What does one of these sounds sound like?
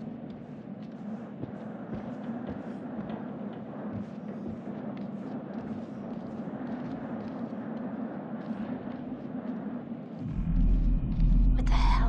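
Bare feet step softly across a wooden floor.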